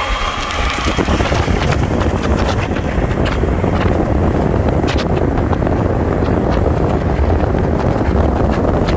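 Car tyres roar on asphalt.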